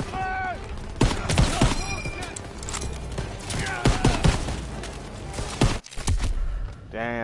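Gunshots crack and echo loudly.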